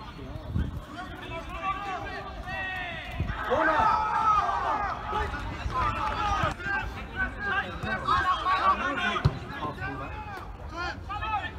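Footballers shout to each other across an open pitch.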